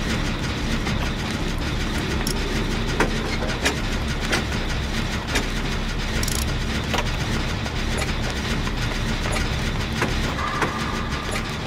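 A machine clicks and rattles as hands work on it.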